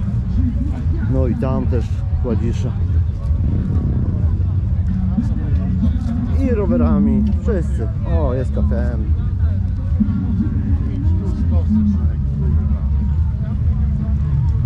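Men talk nearby in casual voices.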